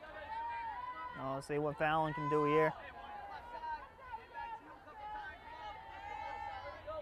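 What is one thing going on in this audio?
A crowd of spectators chatters at a distance outdoors.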